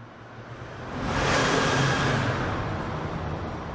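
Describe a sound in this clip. Gravel sprays and crunches under a car's tyres as it passes.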